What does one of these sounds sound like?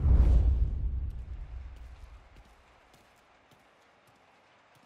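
A man's footsteps tap on a concrete floor.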